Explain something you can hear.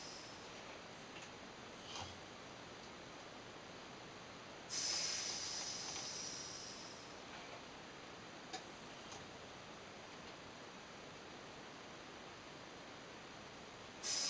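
A metal spring creaks faintly as a hanging weight bobs up and down.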